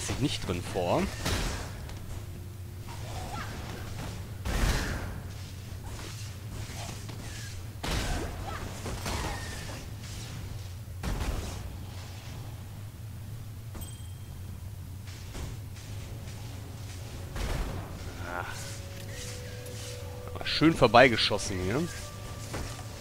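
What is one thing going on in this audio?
Magic spells crackle and boom in short bursts.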